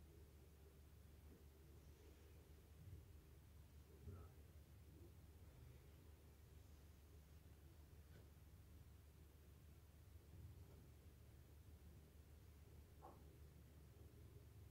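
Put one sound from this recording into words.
Thread pulls through taut fabric with a soft rasp.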